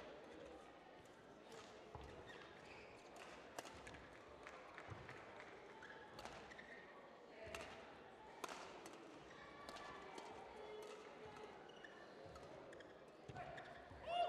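Rackets strike a shuttlecock with sharp pops back and forth in a large echoing hall.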